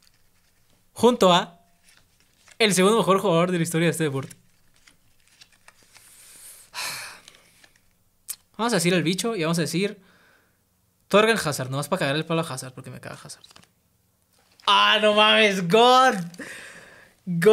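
A young man speaks with animation into a close microphone, his voice rising excitedly.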